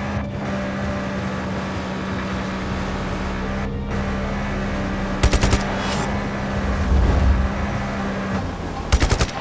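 Water sprays and splashes behind a jet ski.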